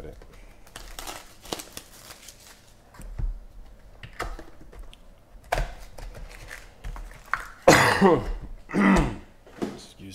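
Cardboard packs rustle and scrape as hands pull them from a box.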